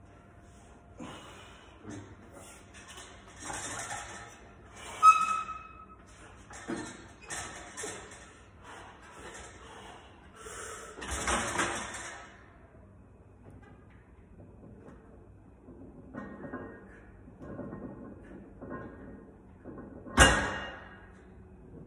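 A man breathes hard and grunts with each heavy lift.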